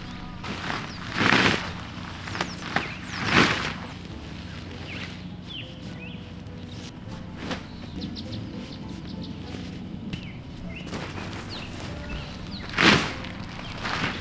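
A tarp rustles and flaps as it is shaken out.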